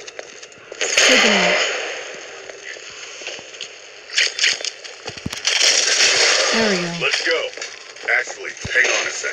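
A rifle fires in short bursts.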